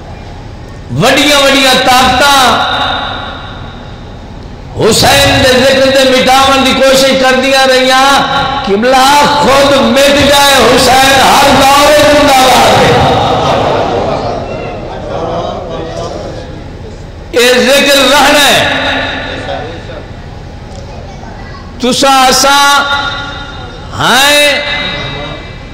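A man speaks passionately and forcefully into a loud microphone, in bursts.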